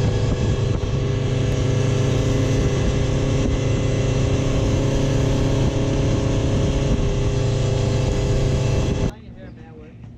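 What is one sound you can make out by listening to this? An outboard motor roars steadily at speed.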